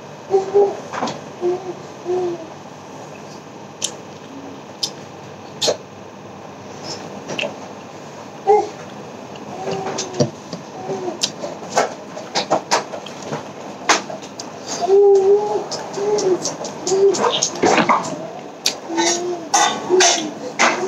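Food crunches and squelches as a man eats with his fingers.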